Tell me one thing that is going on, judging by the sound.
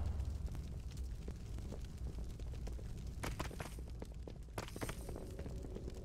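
Magic spells crackle and whoosh in a game battle.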